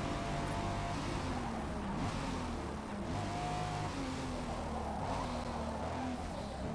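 A racing car engine drops in pitch as the car brakes and shifts down.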